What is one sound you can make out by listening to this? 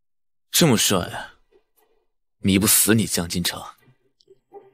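A young man speaks to himself in a low voice, close by.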